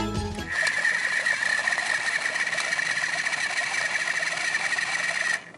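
Fruit rattles and churns inside a plastic blender jug.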